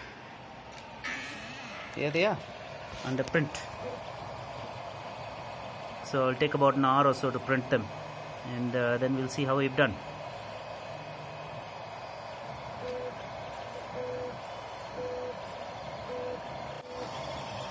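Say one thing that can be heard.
Stepper motors of a 3D printer whine and hum in shifting tones as the print head moves.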